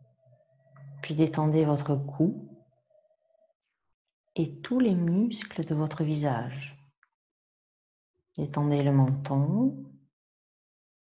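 A woman speaks calmly and slowly, close by, in short phrases with pauses.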